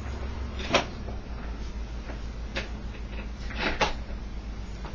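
Footsteps walk away on a hard floor.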